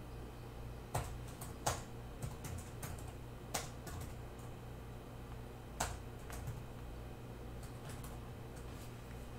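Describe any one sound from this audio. Small plastic clicks and taps sound close by as an object is turned in the hands.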